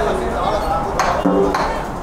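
A man strikes a large drum once.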